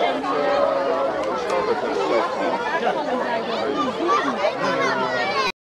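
A crowd of adults and children chatters and calls out nearby outdoors.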